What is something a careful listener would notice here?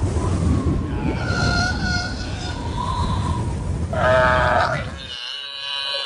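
A large beast roars loudly.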